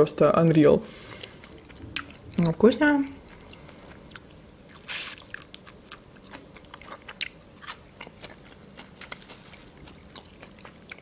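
A young woman crunches and chews food close to the microphone.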